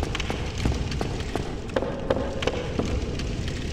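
Footsteps clatter on stone steps.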